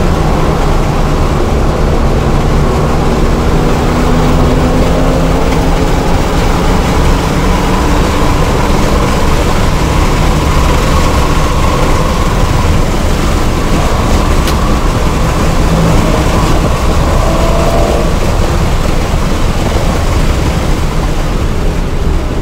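A turbocharged four-cylinder hatchback engine drones at full throttle inside a stripped cabin.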